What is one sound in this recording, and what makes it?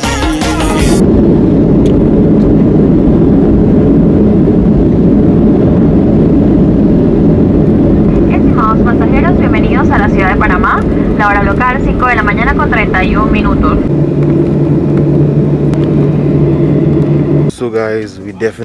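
A jet plane's engines roar with a deep, steady rumble.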